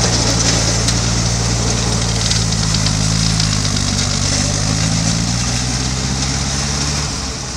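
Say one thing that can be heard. A snow blower roars, throwing snow with a rushing hiss.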